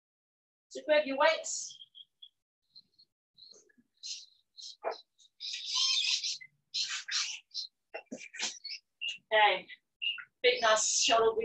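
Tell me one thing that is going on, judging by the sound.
Sneakers shuffle and tap on an exercise mat.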